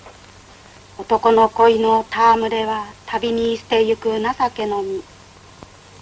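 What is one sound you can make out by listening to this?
A middle-aged woman reads aloud from a book.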